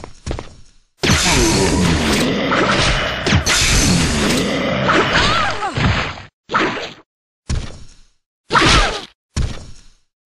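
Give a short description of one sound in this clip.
A monster roars and growls loudly in bursts.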